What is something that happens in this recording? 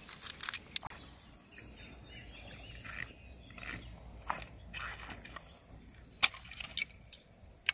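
Footsteps crunch and click on loose stones.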